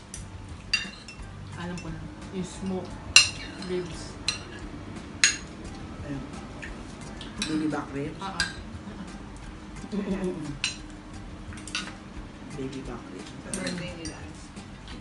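Cutlery clinks and scrapes against plates.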